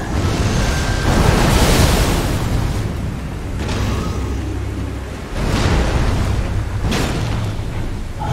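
Heavy blades swish through the air in sudden bursts.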